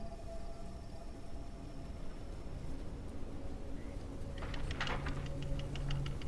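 A heavy iron machine clanks and rumbles.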